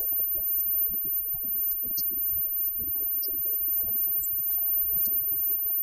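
A live band plays rock music loudly in a room.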